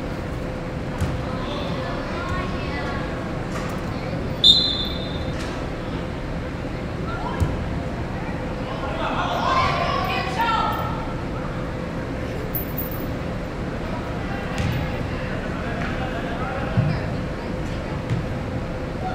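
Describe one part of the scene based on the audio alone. Players kick a ball with dull thuds in a large echoing hall.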